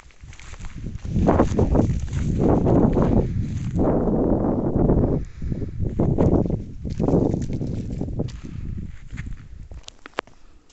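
Wind gusts and rumbles against the microphone.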